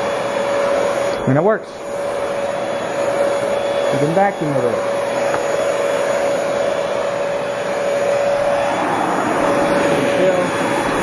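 A handheld vacuum cleaner hums steadily as it sucks across carpet.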